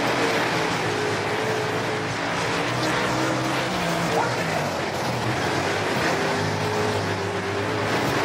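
Other race car engines roar close by.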